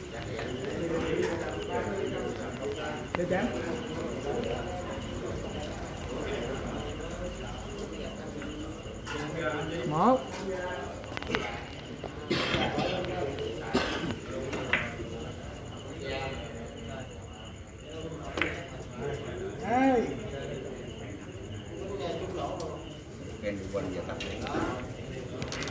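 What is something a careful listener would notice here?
A crowd of spectators murmurs and chatters quietly.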